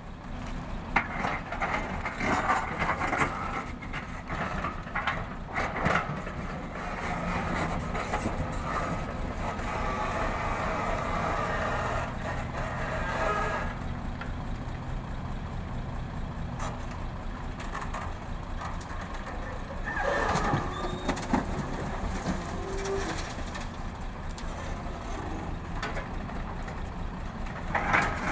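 Rocks and dirt clatter and crash into a truck bed.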